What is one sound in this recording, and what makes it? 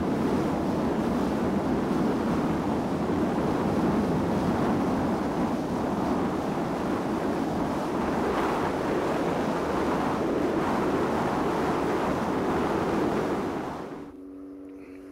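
A boat motor roars steadily as the boat speeds over water.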